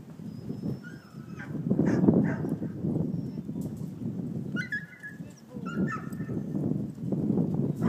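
A dog barks in the distance.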